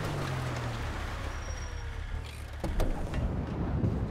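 A truck door opens with a click.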